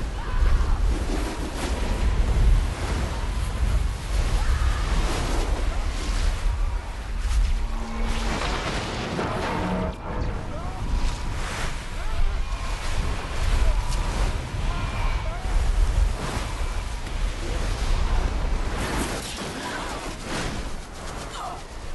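Storm winds roar and howl loudly.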